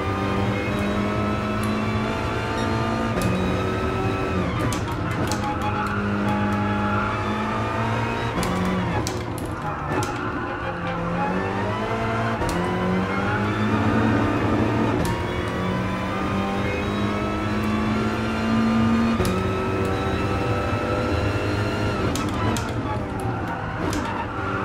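Gear shifts click sharply as the engine changes gear.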